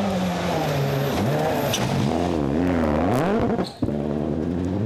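Gravel sprays and crunches under a car's tyres.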